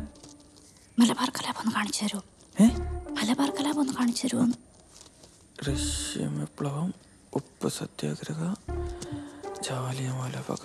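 A teenage boy speaks in a low voice nearby.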